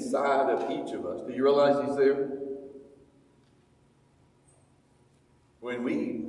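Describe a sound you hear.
An elderly man speaks slowly and earnestly into a microphone, heard through loudspeakers in a room.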